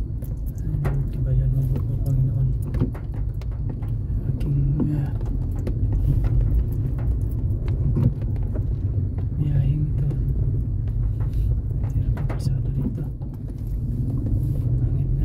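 Raindrops patter on a windshield.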